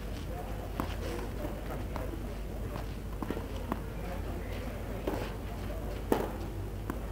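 A tennis ball bounces on a clay court.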